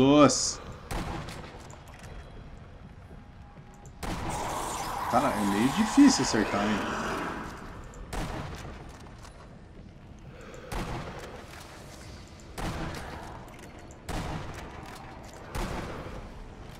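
Rifle shots crack, each followed by a short echo.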